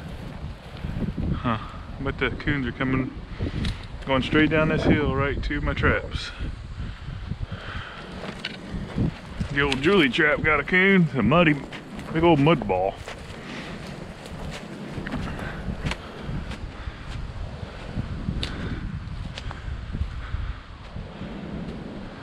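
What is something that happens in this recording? Footsteps crunch through snow and dry leaves.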